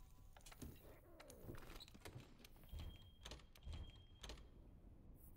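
Menu selections click softly several times.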